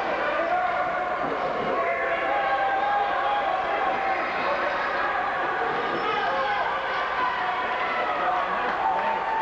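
Ice skates scrape and glide across ice in a large echoing rink.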